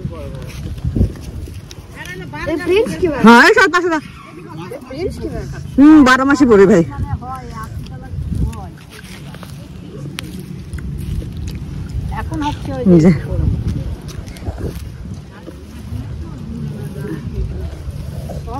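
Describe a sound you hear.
Fingers rustle through dry leaves and grass.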